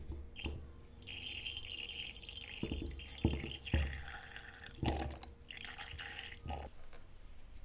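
A brush swirls and taps inside a glass jar.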